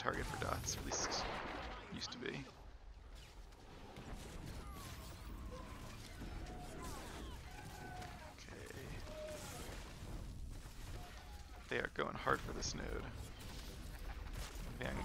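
Blaster shots and energy blasts crackle and bang in a fierce fight.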